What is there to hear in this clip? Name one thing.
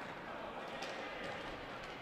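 A ball is kicked hard.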